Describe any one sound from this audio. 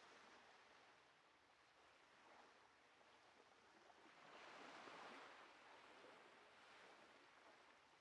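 Water laps gently against a wooden dock, swelling and fading.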